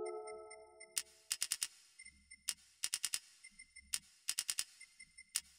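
A game menu ticks in quick bursts.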